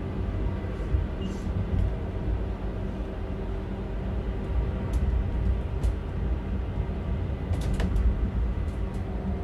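A train rumbles steadily along the rails from inside the cab.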